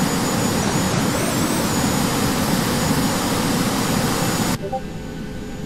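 A jet engine roars loudly outside.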